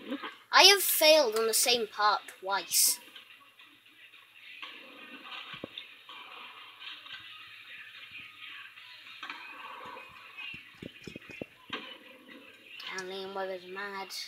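Video game sounds play from a television's speakers.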